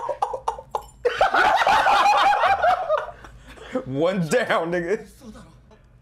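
Several young men laugh together close by.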